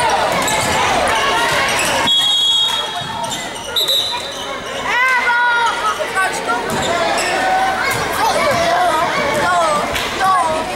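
A crowd of spectators chatters and cheers in an echoing gym.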